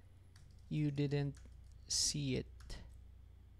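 A young man speaks briefly and calmly into a close microphone.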